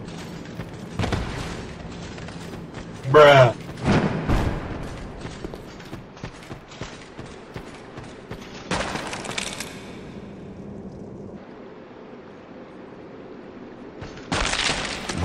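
Armoured footsteps clank and scrape on stone.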